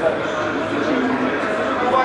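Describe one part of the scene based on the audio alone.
Several men talk among themselves in an echoing hall.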